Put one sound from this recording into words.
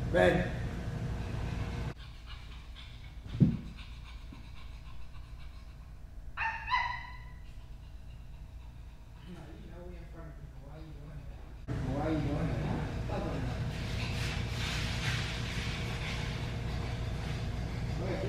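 A young man talks casually nearby in an echoing room.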